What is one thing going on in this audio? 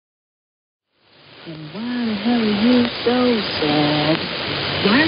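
Radio static hisses and crackles through a receiver.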